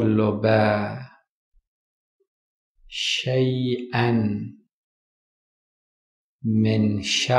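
A man speaks with emphasis into a microphone, in short bursts with pauses.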